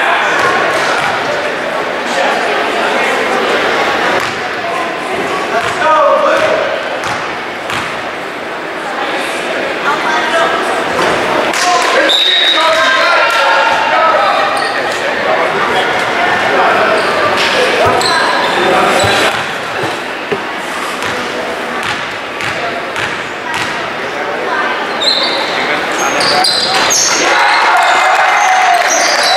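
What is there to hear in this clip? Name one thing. Spectators chatter throughout in a large echoing gym.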